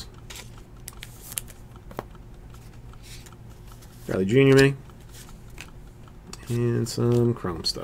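Trading cards rustle and tap softly as hands handle them.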